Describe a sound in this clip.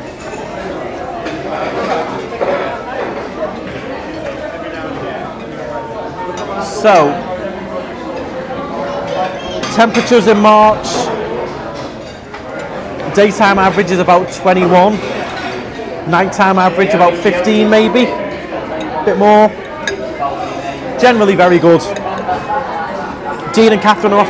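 Many people chatter in the background.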